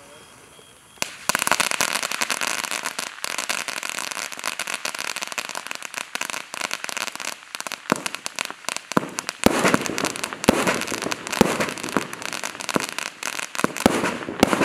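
A firework fountain sprays with a loud, roaring hiss.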